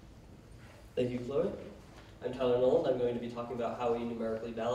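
A man speaks into a microphone in a large room.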